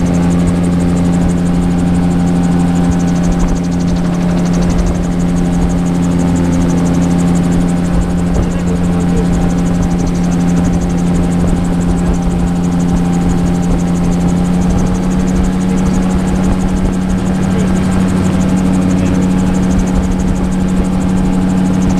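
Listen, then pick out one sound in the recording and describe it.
A small aircraft engine drones loudly and steadily.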